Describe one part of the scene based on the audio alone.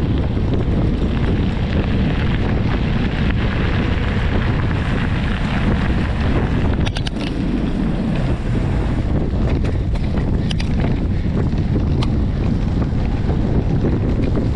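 Wind rushes loudly and steadily past, outdoors.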